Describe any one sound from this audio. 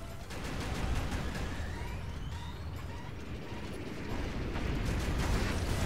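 A robot's weapons fire with buzzing laser blasts.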